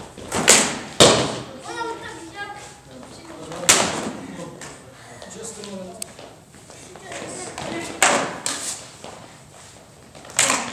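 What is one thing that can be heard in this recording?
Padded practice swords strike each other with sharp thuds in an echoing hall.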